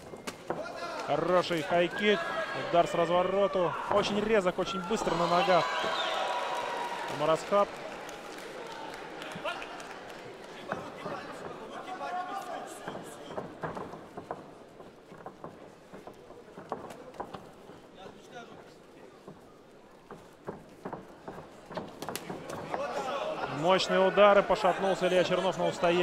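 A crowd murmurs and cheers in a large hall.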